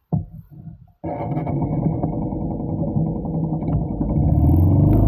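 A motorbike engine starts up and idles.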